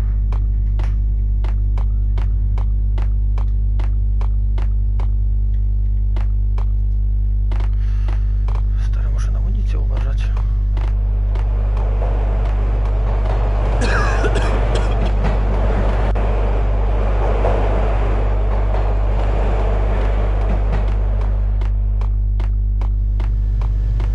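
Quick footsteps tap on a hard floor in a steady running rhythm.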